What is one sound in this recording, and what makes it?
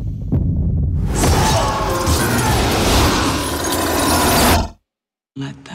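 Glass shatters loudly and shards rain down.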